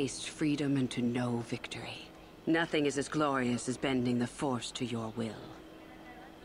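A young woman speaks slowly and with conviction, close to the microphone.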